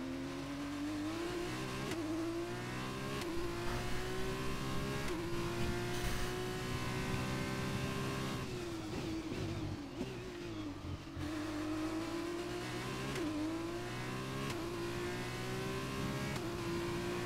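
A racing car engine screams, rising in pitch through each gear and dropping sharply as it shifts up.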